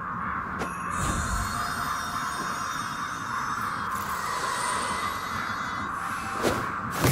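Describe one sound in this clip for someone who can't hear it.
A magical beam hums and shimmers with a high, glassy ring.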